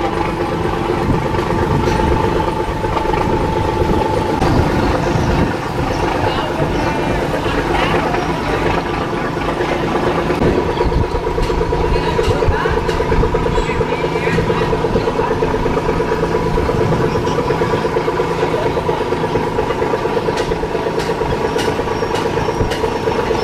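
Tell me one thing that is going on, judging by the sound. A boat engine idles with a steady, loud drone.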